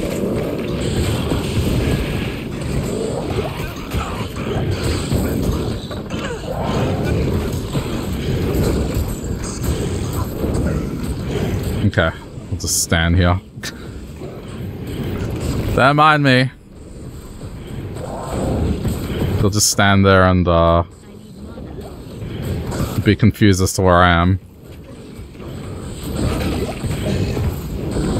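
Monsters clash in a fight with low thuds and grunts.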